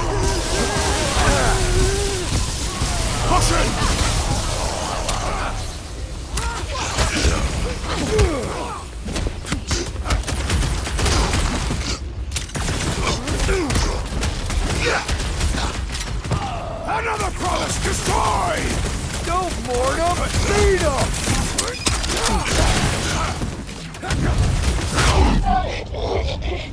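Heavy punches and blows land in a fast fight.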